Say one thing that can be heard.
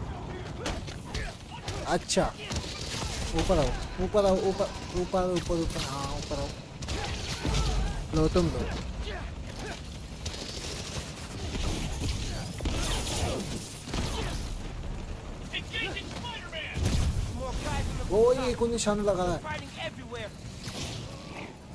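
Punches and kicks thud in quick bursts.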